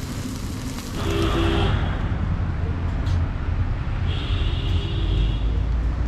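Traffic rumbles along a street outdoors.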